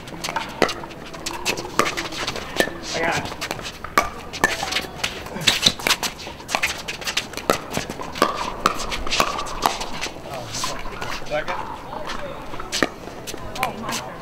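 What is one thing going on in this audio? Paddles hit a plastic ball with sharp, hollow pops in a quick back-and-forth rally.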